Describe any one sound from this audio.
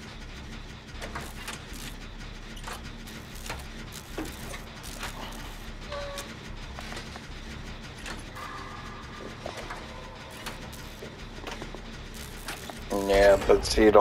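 A generator engine rattles and clanks.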